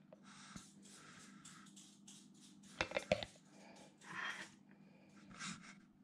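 A plastic jug rattles and taps as it is handled.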